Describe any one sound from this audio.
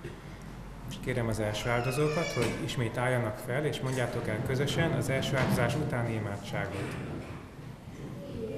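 A man chants into a microphone in a reverberant hall.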